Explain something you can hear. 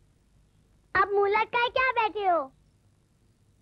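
A young girl speaks in a high voice.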